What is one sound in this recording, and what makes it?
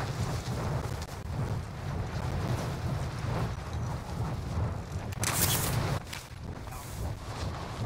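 Wind rushes loudly past a falling parachutist.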